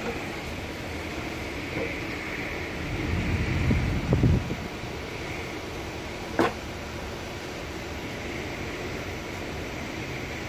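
An electric welding arc crackles and hisses steadily.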